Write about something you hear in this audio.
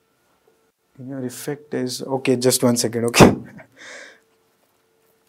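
A young man speaks into a microphone in a calm, lecturing voice.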